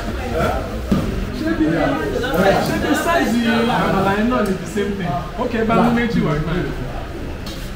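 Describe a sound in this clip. A woman talks through a window.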